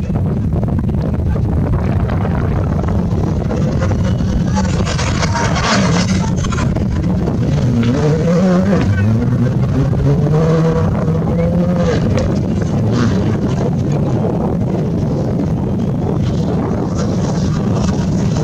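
A rally car engine roars and revs loudly as it races past.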